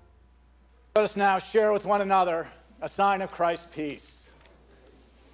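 A man speaks with animation through a microphone in a large echoing room.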